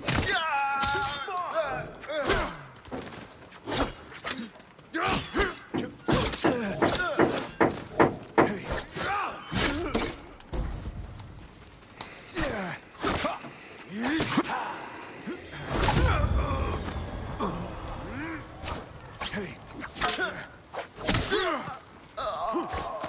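Swords clash and ring in a fast, rough fight.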